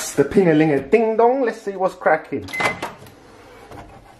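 A microwave door clicks open.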